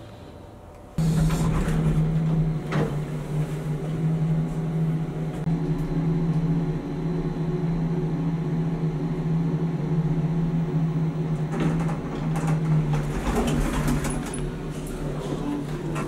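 A lift hums steadily as it travels.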